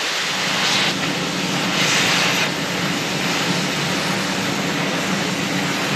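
A cutting torch hisses as it cuts through steel.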